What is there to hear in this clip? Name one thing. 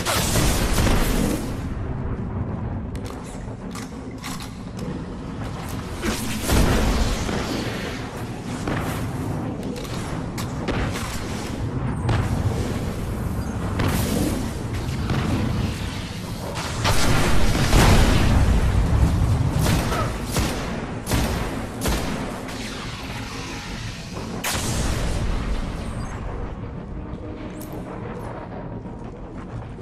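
Rifle shots crack in bursts in a video game.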